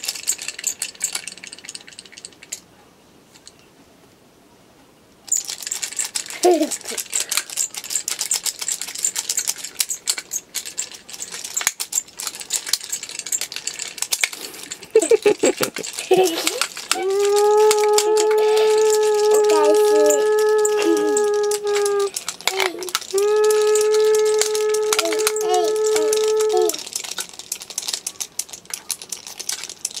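Small plastic toys rattle and click in handling hands.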